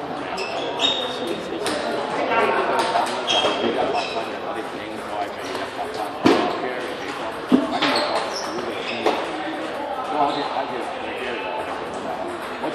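Men chatter in the background of the hall.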